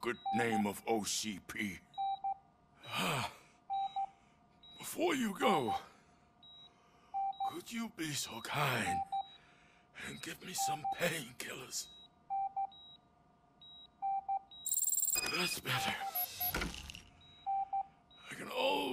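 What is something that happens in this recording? A heart monitor beeps steadily.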